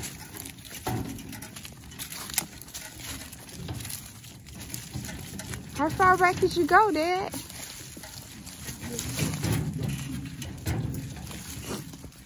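A wheelbarrow rolls and rattles over rough ground.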